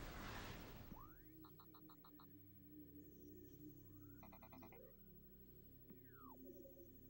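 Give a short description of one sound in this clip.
Electronic beeps chime in short bursts.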